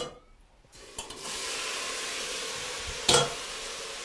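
Meat sizzles loudly in a hot pot.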